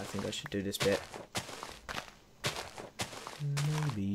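A shovel digs into soft dirt with quick scraping crunches.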